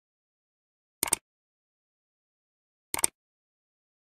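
A click sounds as a finger taps a button.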